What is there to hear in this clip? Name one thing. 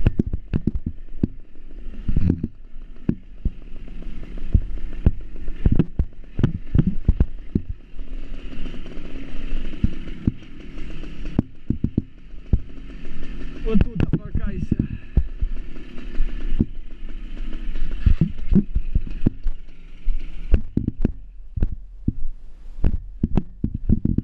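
Tyres bump and rattle over a rough dirt road.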